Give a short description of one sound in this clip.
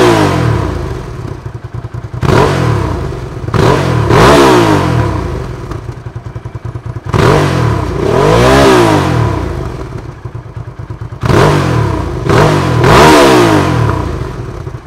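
A motorcycle engine idles with a deep, loping rumble and is revved hard again and again, its exhaust roaring up and falling back.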